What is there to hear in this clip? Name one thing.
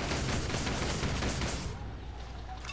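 A heavy machine gun fires a rapid burst.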